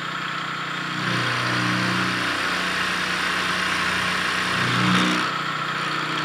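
A milling cutter grinds loudly through steel.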